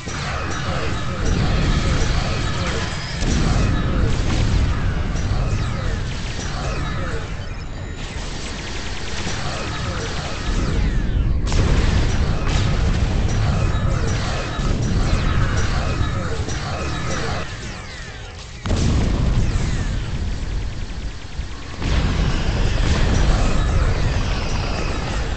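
Energy weapons fire in rapid, buzzing bursts.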